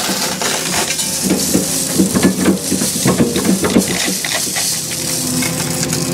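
Dirt and gravel pour from an excavator bucket and rattle down.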